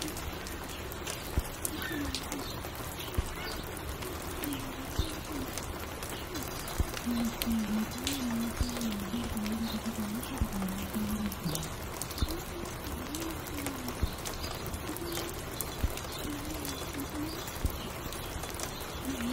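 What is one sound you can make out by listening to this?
A record player plays a slow, low melody.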